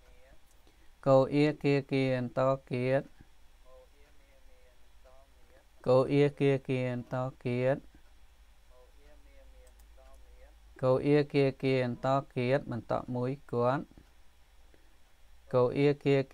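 A man reads out syllables slowly and clearly through a microphone, in short bursts with pauses.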